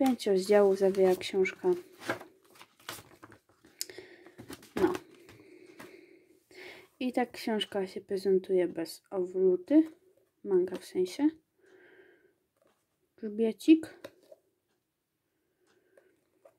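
Paper rustles as a book is handled close by.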